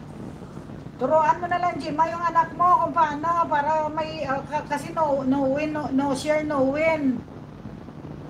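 A middle-aged woman sings close to a microphone.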